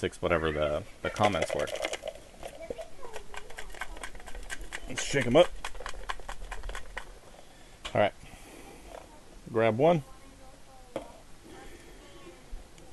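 A plastic cup crinkles and clicks in a man's hands.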